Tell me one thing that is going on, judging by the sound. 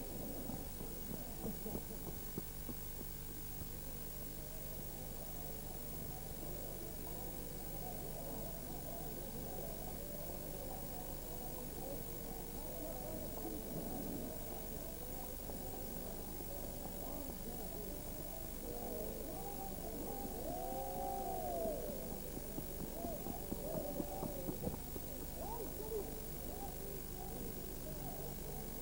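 Horses' hooves clop on a paved road.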